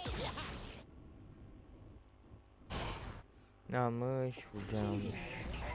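Spell effects whoosh and crackle in a fight.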